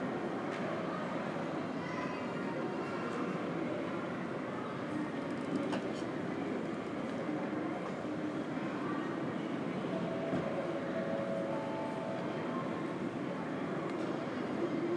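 A low murmur of distant voices echoes through a large hall.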